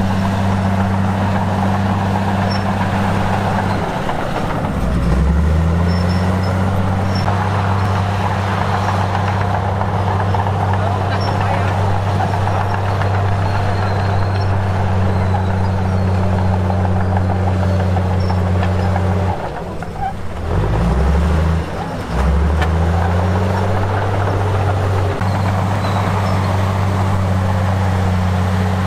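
A bulldozer engine rumbles steadily and revs up and down.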